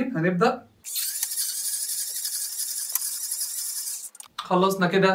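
A handheld milk frother whirs steadily in liquid.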